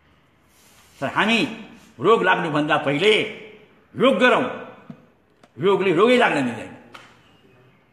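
An elderly man speaks close by, with animation.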